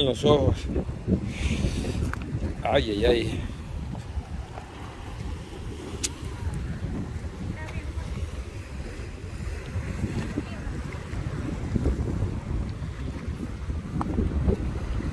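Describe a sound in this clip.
Waves wash and break against a rocky shore.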